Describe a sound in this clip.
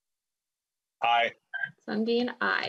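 A middle-aged man speaks over an online call.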